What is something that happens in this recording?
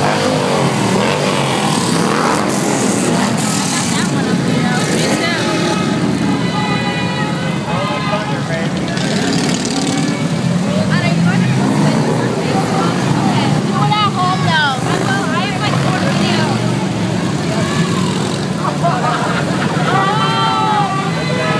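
Motorcycle engines rumble and idle close by.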